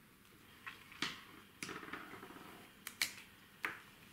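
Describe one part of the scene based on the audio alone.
A plastic ruler slides and taps on paper.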